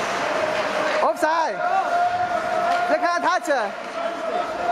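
Young players shout across the ice.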